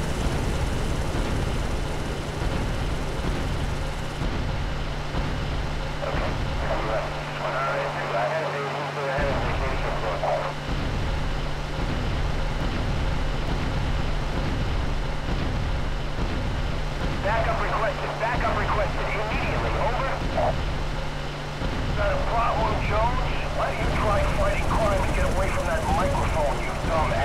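A heavy engine rumbles steadily.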